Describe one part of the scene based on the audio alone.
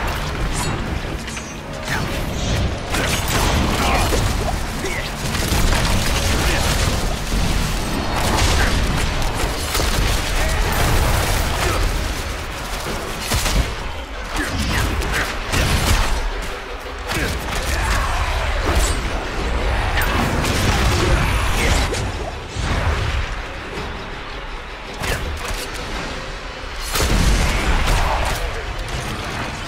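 Game spell blasts and magic effects crackle and boom throughout a fight.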